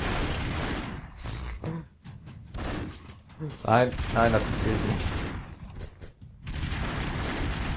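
Guns fire rapid shots in a video game.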